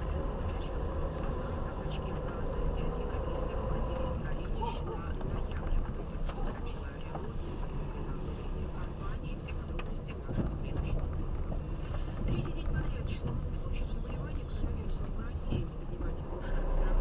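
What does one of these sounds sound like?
Tyres rumble and crunch over a rough road.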